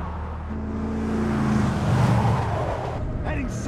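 A pickup truck speeds past with its engine roaring.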